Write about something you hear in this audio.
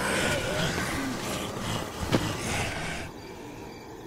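A body thuds down onto pavement.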